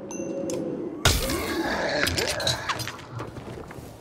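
Weapons clash and strike hard in a fight.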